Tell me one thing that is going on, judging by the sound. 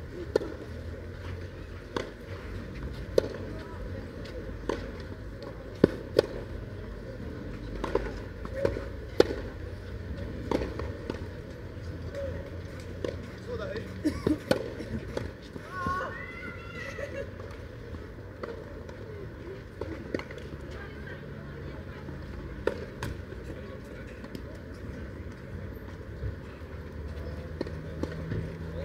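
Tennis balls are struck with rackets outdoors, with sharp pops.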